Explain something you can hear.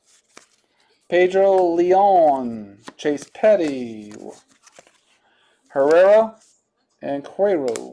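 Trading cards slide and tap against each other in a hand.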